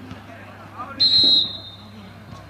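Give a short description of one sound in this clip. A referee's whistle blows sharply outdoors.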